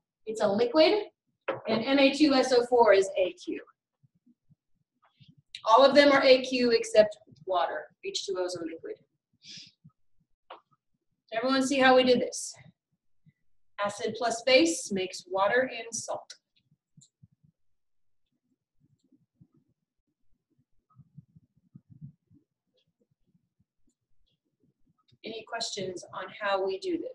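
A woman explains calmly, as if lecturing.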